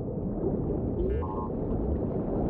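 A small robot gives a short burst of electronic beeps.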